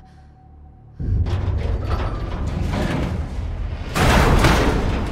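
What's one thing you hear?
A heavy metal door grinds open.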